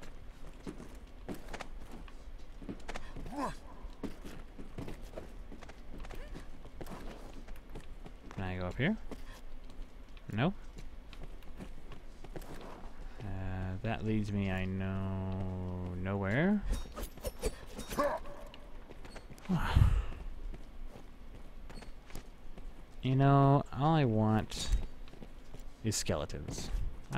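Footsteps tread on stone steps and floors.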